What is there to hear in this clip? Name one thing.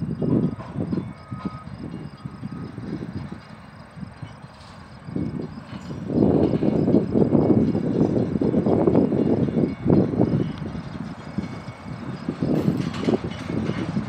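Steel wheels clank and squeal on the rails.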